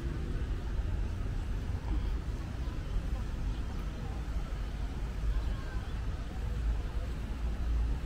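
Water splashes gently in a fountain.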